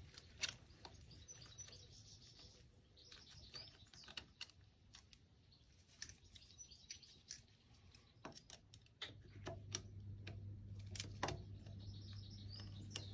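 Metal parts click and tap against each other.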